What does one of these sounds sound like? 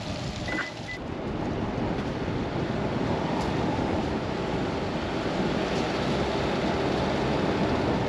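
A car rolls along a gravel road with a low steady rumble.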